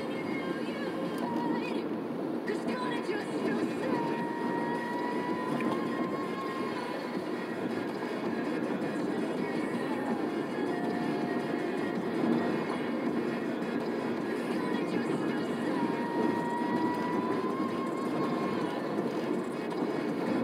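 A car drives steadily along a road with a low rumble of tyres and engine from inside the cabin.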